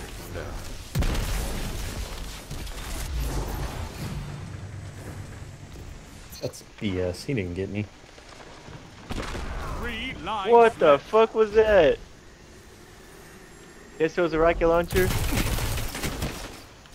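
Gunfire bursts out in loud blasts.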